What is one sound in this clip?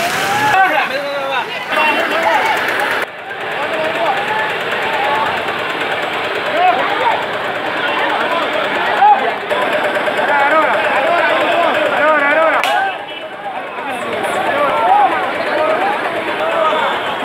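A large outdoor crowd of men and women talks and calls out all around.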